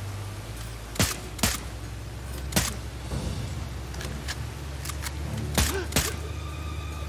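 Pistol shots ring out sharply, one after another.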